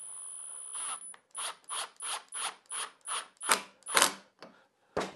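A cordless drill clicks in quick short bursts as a screw tightens.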